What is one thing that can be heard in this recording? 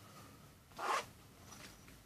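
A zipper on a small wallet is pulled open.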